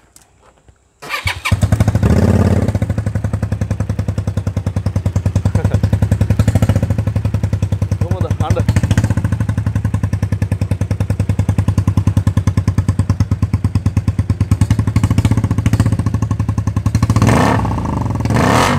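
A motorcycle engine starts with a kick and idles with a steady, loud thumping beat.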